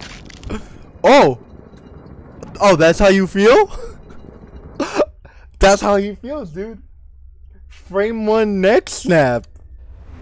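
A young man talks and exclaims loudly into a close microphone.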